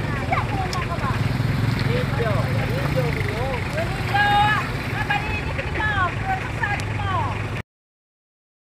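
Men and women talk and call out close by, outdoors.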